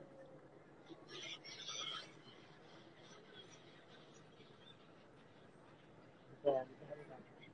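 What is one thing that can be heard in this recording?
Gulls cry overhead.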